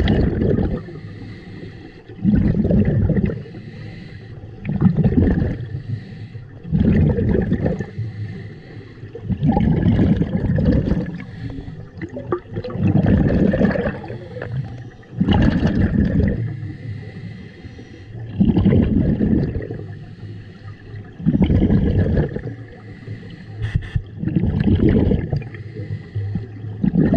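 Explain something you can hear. Air bubbles from a scuba diver rush out in loud bursts every few seconds, heard underwater.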